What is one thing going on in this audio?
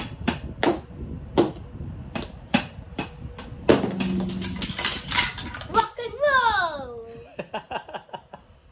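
A young boy beats a hand drum with sticks.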